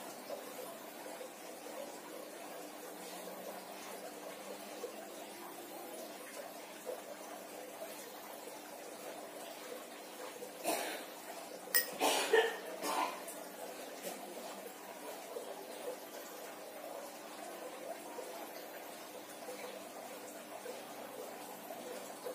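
A small hard tool scrapes across bare skin.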